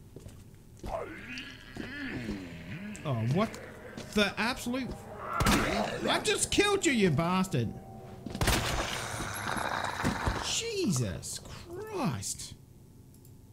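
A zombie groans and moans hoarsely.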